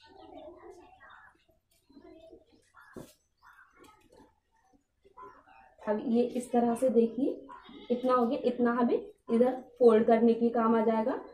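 Cloth rustles as hands smooth and fold it.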